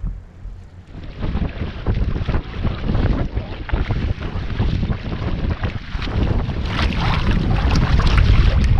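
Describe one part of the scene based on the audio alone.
A paddle splashes through the water in steady strokes.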